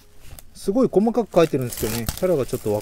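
Plastic wrap crinkles as a man handles a box.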